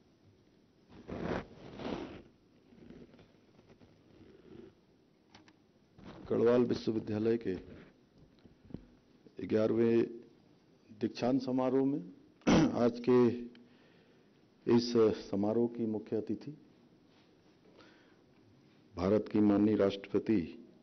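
A man speaks slowly and formally into a microphone, heard through loudspeakers in a large echoing hall.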